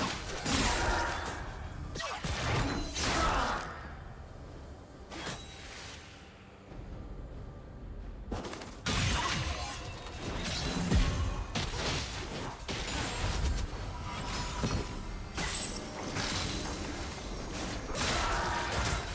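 Game attacks hit with sharp impacts.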